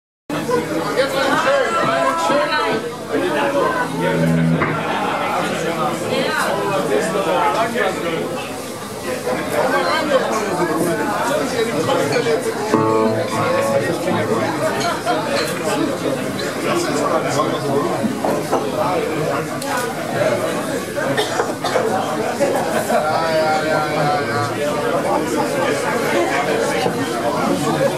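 A man sings loudly through a microphone, over loudspeakers.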